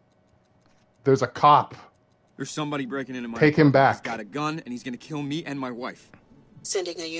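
A man speaks urgently through a phone.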